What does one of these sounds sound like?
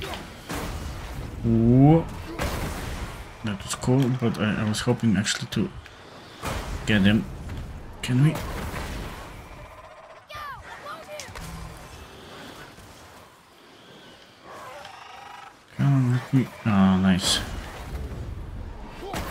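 An axe strikes hard with heavy thuds.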